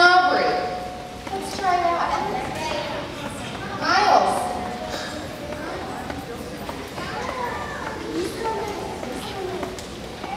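A large choir of young children sings together in a large echoing hall.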